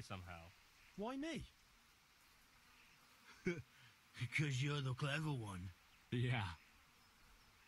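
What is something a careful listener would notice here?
Another young man answers calmly, close by.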